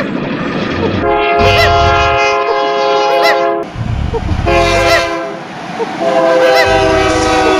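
A train horn blares loudly in bursts.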